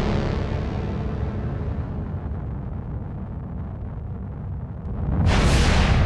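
A massive crystal sinks into the ground with a deep, grinding rumble that slowly fades.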